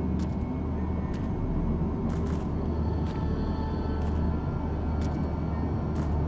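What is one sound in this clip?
Footsteps crunch on rocky ground at an even pace.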